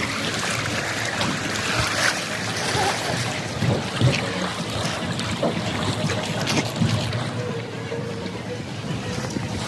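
Water rushes and splashes down a slide.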